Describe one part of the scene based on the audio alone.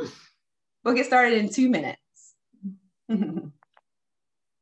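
A woman talks warmly and cheerfully over an online call.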